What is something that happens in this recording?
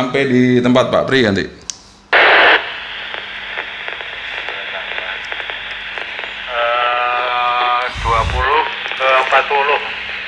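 A middle-aged man speaks calmly into a handheld radio microphone.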